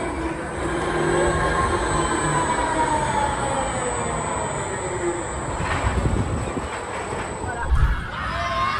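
A fairground ride's machinery whirs and drones as its arm swings, rising and falling in pitch.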